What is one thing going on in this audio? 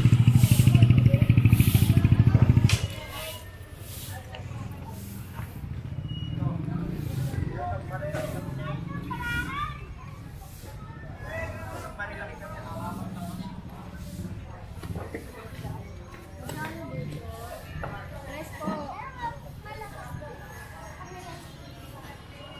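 Voices of people chatter on a busy street outdoors.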